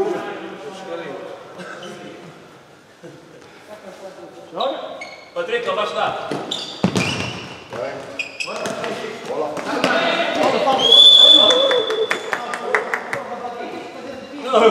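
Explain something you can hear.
Men shout to each other from across the hall.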